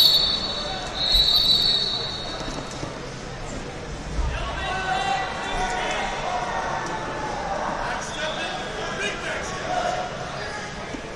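A crowd of people talks and shouts in a large echoing hall.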